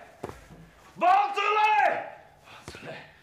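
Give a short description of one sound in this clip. An older man calls out loudly.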